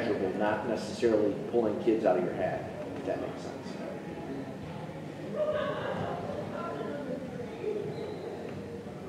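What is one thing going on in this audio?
An adult speaks through a microphone at a distance in a large echoing hall.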